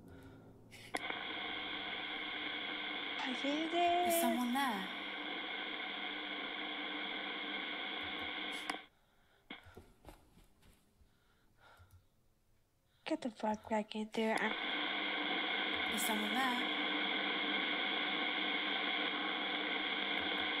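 A ghost radio device hums with a steady buzzing static.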